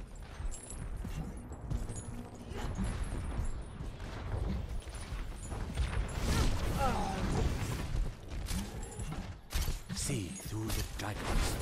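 Heavy footsteps thud steadily on stone.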